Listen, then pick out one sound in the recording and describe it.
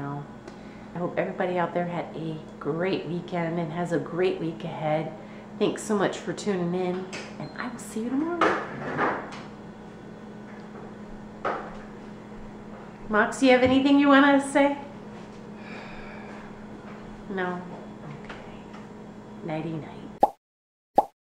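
A middle-aged woman talks calmly and cheerfully close to the microphone.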